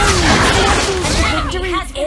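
Swords clash and magic blasts crackle in a fight.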